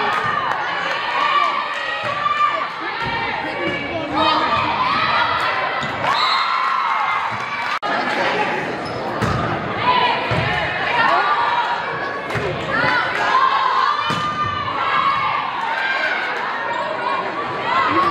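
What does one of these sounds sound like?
A volleyball is struck with sharp slaps in an echoing gym.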